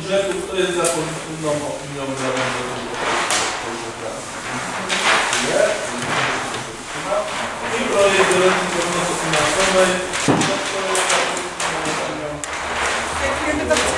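A man argues loudly nearby.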